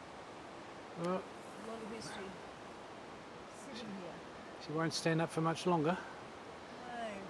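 An elderly woman talks calmly close by, outdoors.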